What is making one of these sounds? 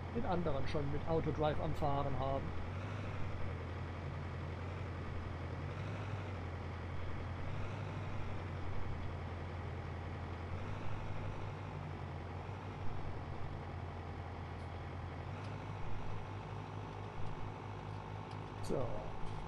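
A tractor engine drones steadily while driving.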